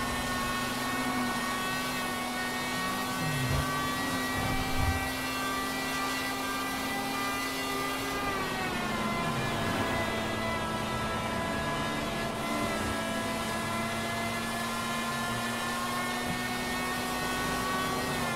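A race car engine roars steadily at high speed.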